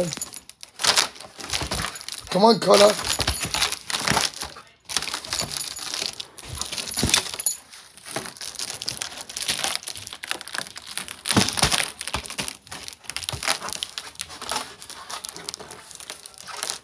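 A foil balloon crinkles and squeaks as a dog bites at it.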